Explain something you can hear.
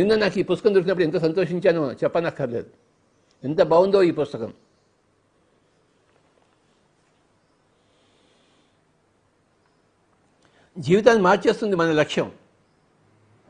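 An elderly man speaks calmly and close by, with long pauses.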